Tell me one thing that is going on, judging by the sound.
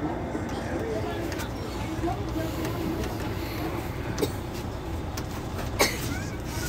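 A bus engine idles nearby with a steady low rumble.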